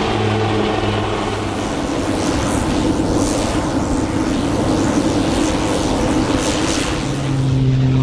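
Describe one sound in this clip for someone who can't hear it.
A propeller plane's engine hums loudly nearby.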